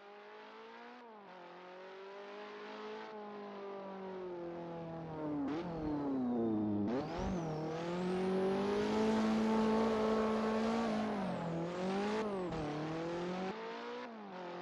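A racing car engine shifts gears with sudden dips in pitch.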